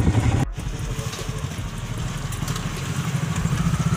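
Fuel gushes from a pump nozzle into a tank.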